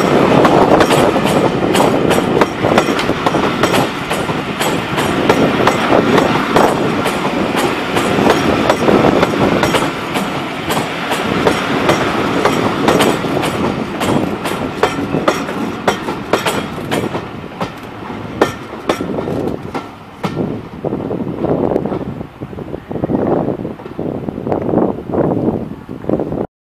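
Railway coaches rumble past close by, then fade as the train moves away.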